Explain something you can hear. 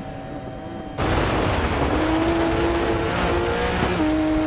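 A rally car engine revs loudly at high speed.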